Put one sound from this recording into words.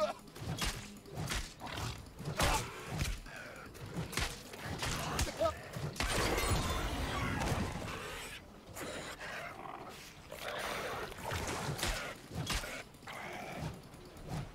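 Axe blows strike with sharp hits.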